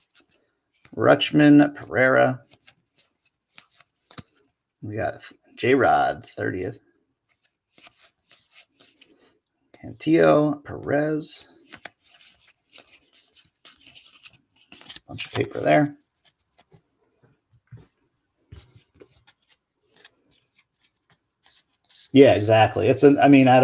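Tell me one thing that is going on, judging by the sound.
Stiff paper cards flick and rustle softly as hands riffle through a stack.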